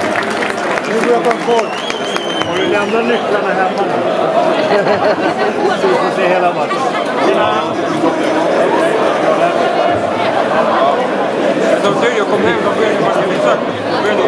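A large crowd of fans sings and chants loudly in a big echoing stadium.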